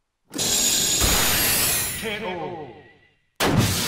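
An energy blast whooshes and explodes.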